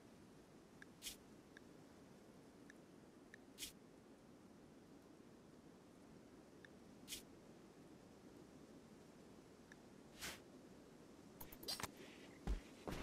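Interface clicks tick softly now and then.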